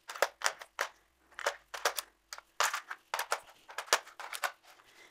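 Plastic tiles click and clack against each other as a hand sets them in place.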